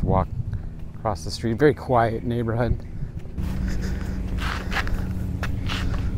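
A man talks calmly and close up through a clip-on microphone.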